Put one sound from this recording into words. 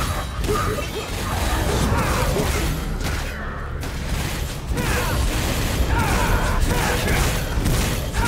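A sword slashes and clangs against a monster in quick strikes.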